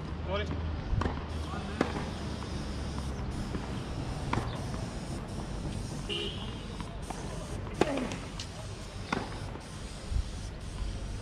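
A tennis ball is struck with a racket in sharp pops.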